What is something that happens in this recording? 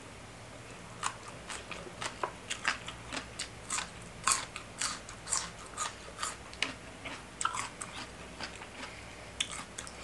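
A young woman chews food noisily and wetly, close up.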